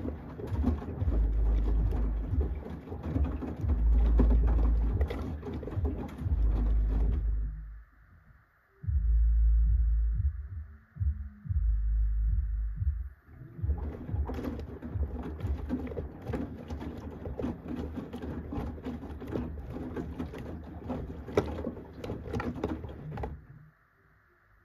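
Wet clothes thump and slosh inside a washing machine drum.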